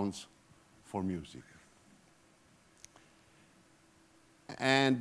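A man speaks calmly through a microphone in a reverberant hall, with pauses between phrases.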